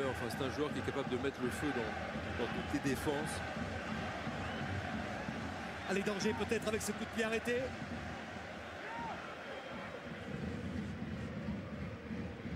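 A large stadium crowd roars and chants steadily in the open air.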